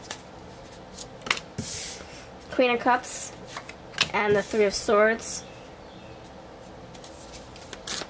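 Cards are laid down on a table with soft slaps and slides.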